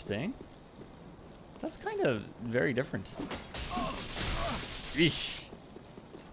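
Lightning crackles and hisses.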